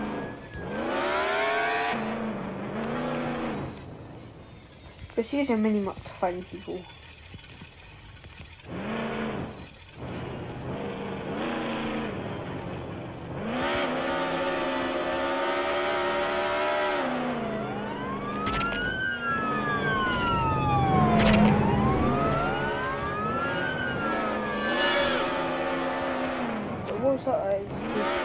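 A sports car engine revs up and down as the car accelerates and slows.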